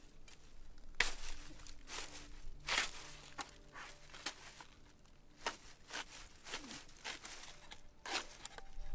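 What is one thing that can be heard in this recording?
A spade scrapes and chops into dry soil.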